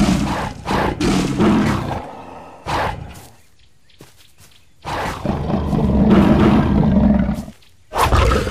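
A tiger snarls and growls.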